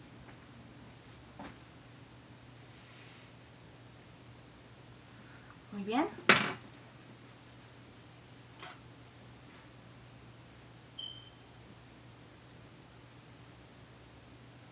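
A woman brushes her hair with soft swishing strokes.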